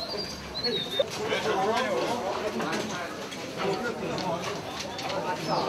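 A crowd murmurs outdoors in the background.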